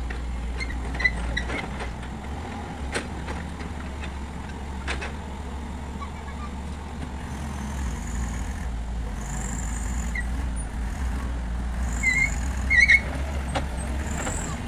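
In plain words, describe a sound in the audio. Wooden logs knock together as an excavator grapple pushes them.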